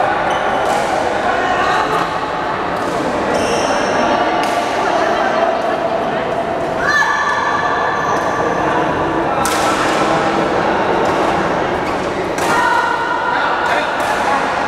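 Young players talk and call out in a large echoing hall.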